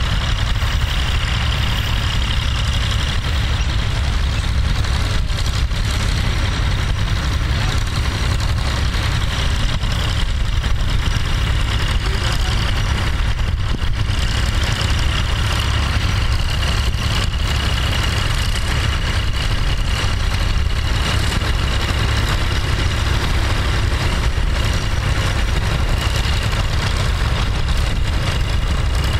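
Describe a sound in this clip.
An old tractor engine chugs steadily close by.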